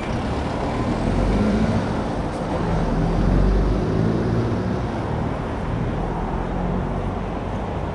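A car drives up and passes close by.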